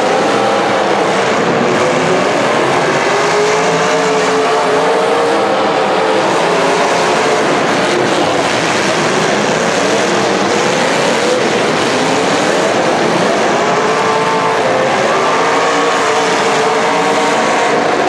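A crowd cheers in the stands.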